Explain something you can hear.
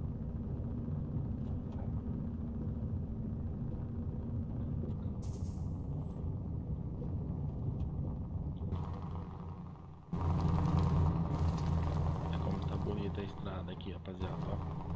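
Tyres crunch over a gravel road.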